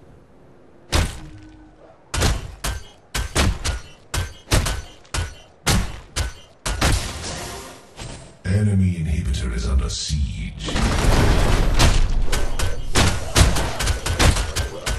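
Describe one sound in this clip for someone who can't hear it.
Heavy weapon blows strike again and again in quick bursts.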